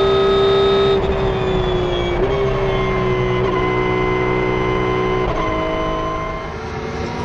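A racing car's engine falls in pitch as the car slows down.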